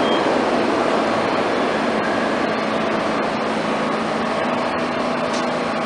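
A train idles with a steady hum in an echoing station.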